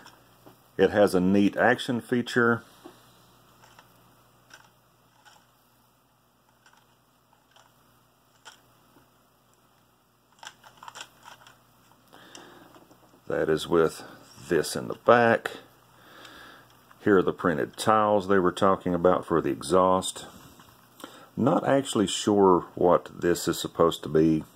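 Small plastic parts click and rattle softly as a toy is turned in the hands.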